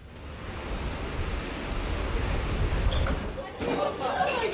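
Rough sea waves churn and crash.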